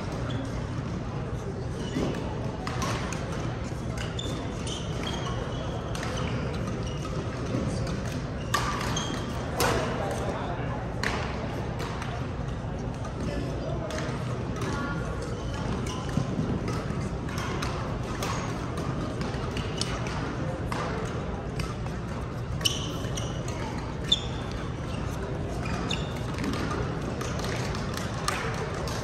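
Shoes squeak on a court floor.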